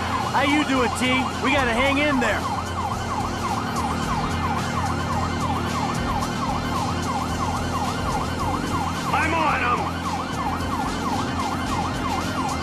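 A police siren wails rapidly up and down.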